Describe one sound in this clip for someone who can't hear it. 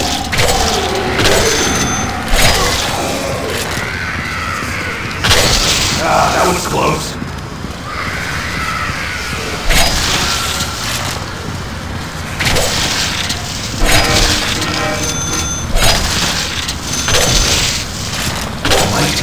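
Blades slash and hack with sharp, wet strikes.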